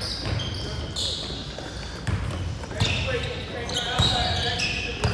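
Sneakers squeak sharply on a hard court in an echoing gym.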